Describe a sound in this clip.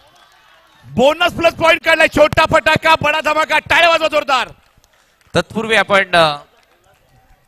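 A young man chants rapidly and loudly.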